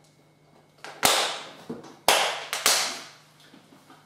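A plastic tub clatters onto a table.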